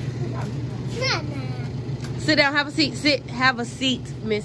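A young girl talks and squeals excitedly.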